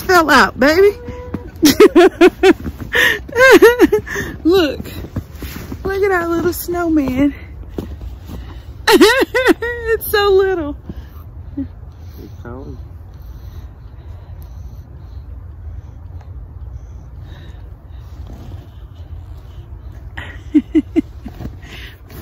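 A young woman talks and laughs with animation close to the microphone.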